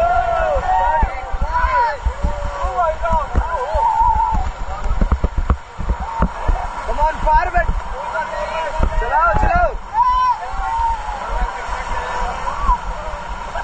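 Young men and women shout and whoop excitedly nearby.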